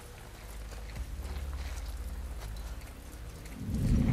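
Footsteps rustle softly through tall grass.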